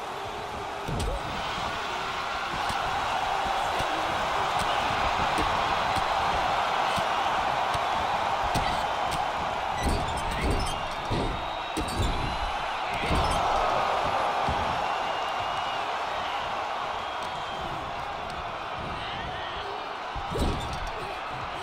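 Heavy thuds of bodies slamming onto a wrestling mat ring out.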